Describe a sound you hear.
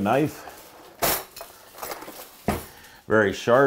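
A drawer slides open and shut.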